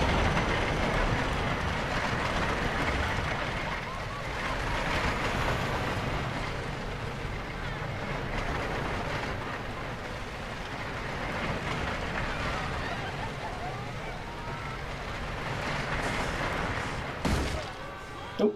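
A roller coaster train rumbles and clatters along a track at speed.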